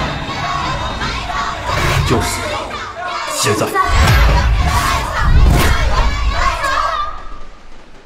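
A group of young women chant a cheer in unison.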